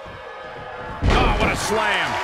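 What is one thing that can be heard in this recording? A wrestler's body slams hard onto a ring mat with a loud thud.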